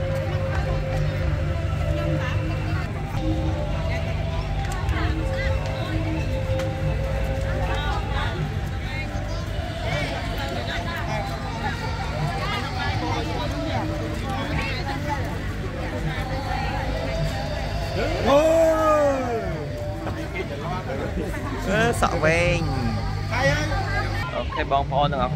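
Steady music plays over loudspeakers.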